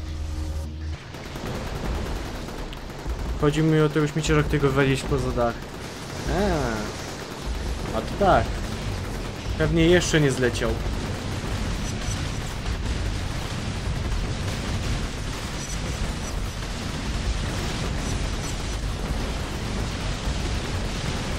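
Explosions and gunfire boom and crackle steadily.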